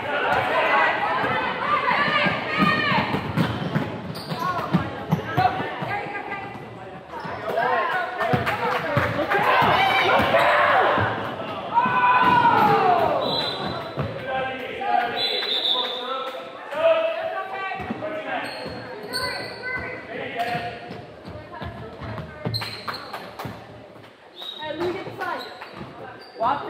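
Children shout and call out across a large echoing gym.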